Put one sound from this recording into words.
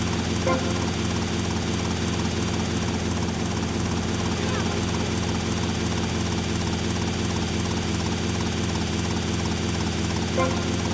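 A helicopter's rotor whirs and its engine drones steadily.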